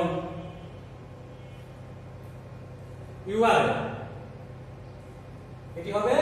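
A young man speaks aloud in short bursts in a room with some echo.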